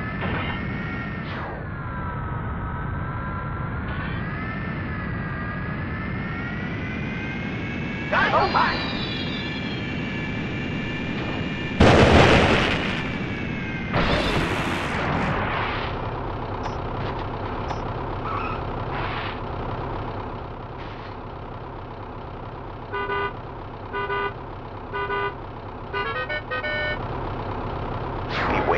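A hovering vehicle's engine hums and whines steadily, rising and falling in pitch.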